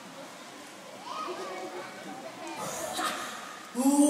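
A crowd of people murmurs and chatters nearby in a large echoing hall.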